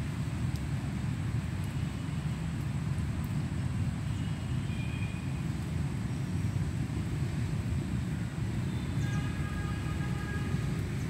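Wind rustles and thrashes the leaves of a tree.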